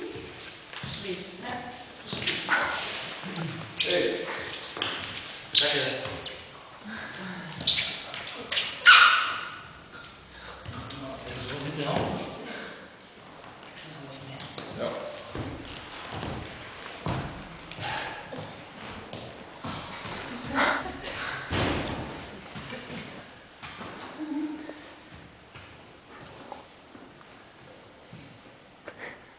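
A man talks calmly, echoing in a large hall.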